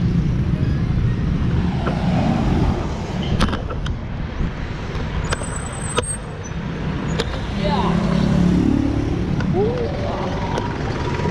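Road traffic rumbles past nearby.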